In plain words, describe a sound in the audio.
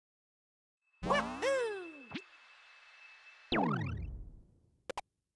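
Playful video game sound effects chime and swoop.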